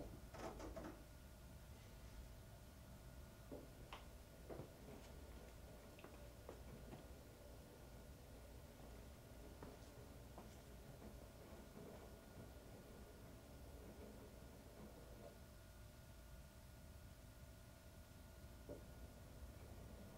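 A washing machine drum hums steadily as it turns.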